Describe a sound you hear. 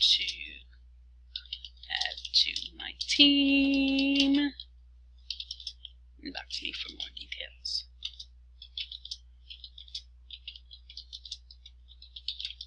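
Keyboard keys click rapidly in bursts of typing.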